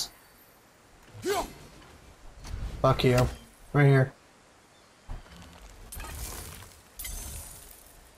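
A heavy axe whooshes through the air.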